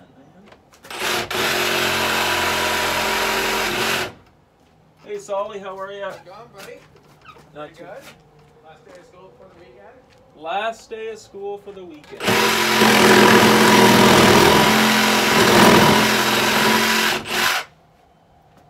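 A power grinder whines loudly as it grinds wood, in two long bursts.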